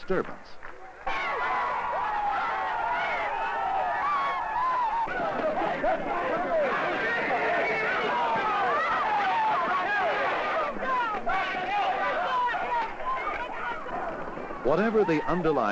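A large crowd shouts and screams in chaotic uproar.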